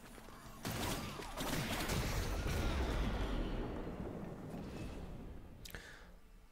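Game effects rumble and crash.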